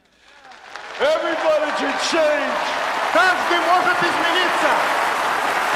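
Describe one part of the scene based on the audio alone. A man speaks with strong emotion into a microphone.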